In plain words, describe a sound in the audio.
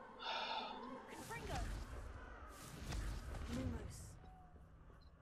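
A magic spell bursts and crackles with a low whoosh.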